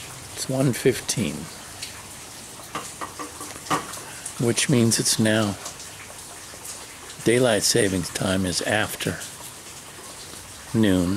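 An elderly man speaks slowly and calmly close to the microphone, with long pauses.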